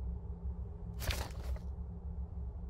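A book opens with a papery rustle.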